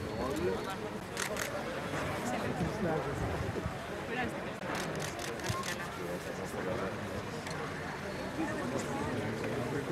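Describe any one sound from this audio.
A crowd of men and women chatter closely.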